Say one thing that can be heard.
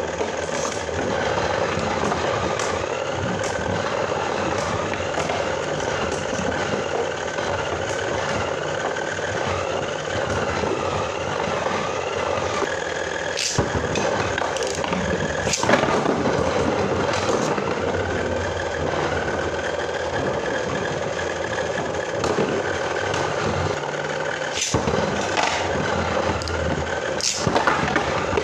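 Spinning tops whir and grind across a plastic bowl.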